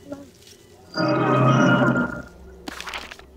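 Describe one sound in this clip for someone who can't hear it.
A short game sound effect rings out as something is gathered.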